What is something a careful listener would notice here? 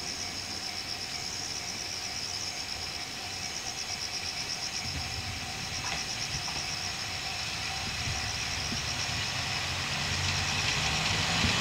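A diesel train rumbles closer on the tracks, growing louder.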